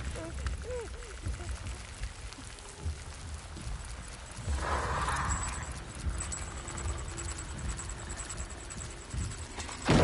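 A man breathes heavily inside a helmet.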